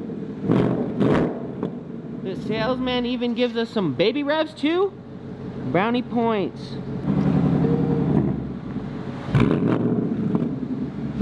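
A sports car engine idles with a deep, throaty rumble.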